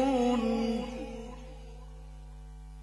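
An elderly man sings out a long, melodic phrase through a microphone, with reverb.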